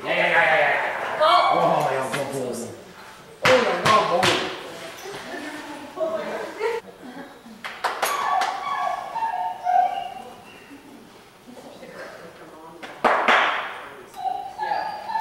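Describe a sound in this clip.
A man calls out loudly with encouragement in an echoing hall.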